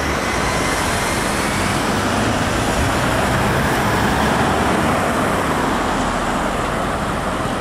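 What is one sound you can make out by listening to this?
Car engines hum and tyres roll on the road nearby.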